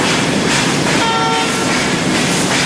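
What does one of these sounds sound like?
A steam locomotive whistle sounds briefly.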